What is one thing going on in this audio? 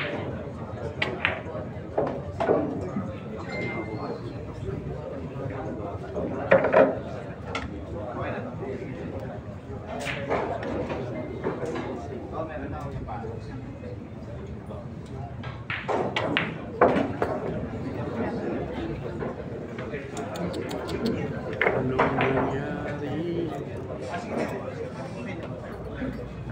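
A crowd murmurs quietly in a large room.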